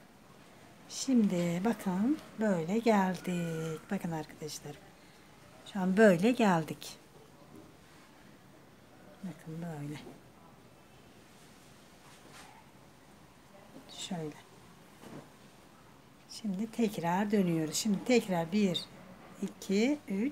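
A woman speaks calmly, close by, in short bursts.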